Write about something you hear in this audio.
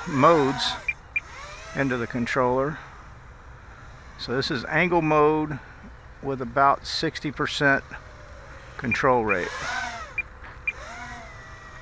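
A small drone buzzes as it flies overhead.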